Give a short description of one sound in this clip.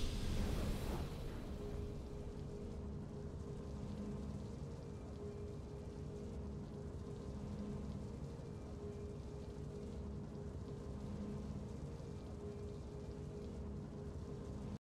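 Soft game music plays in a slow, steady loop.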